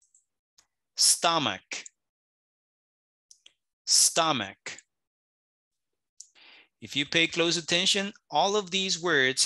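A man speaks clearly through an online call, slowly pronouncing single words with pauses.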